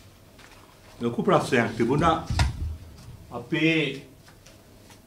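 A middle-aged man speaks into microphones.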